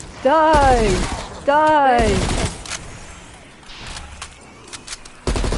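A ray gun fires in loud, whining bursts.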